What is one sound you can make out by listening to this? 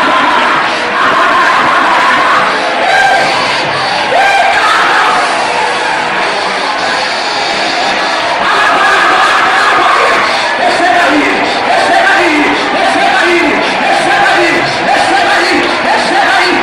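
A large crowd of men and women sings and shouts loudly in a large echoing hall.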